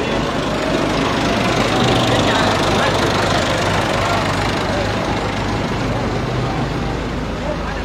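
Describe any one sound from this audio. A motor scooter passes by on the road.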